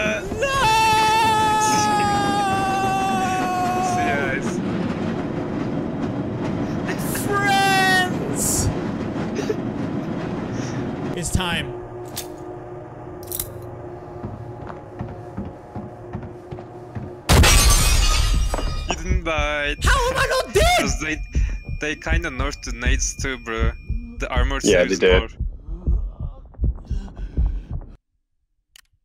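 A young man talks and laughs with animation into a close microphone.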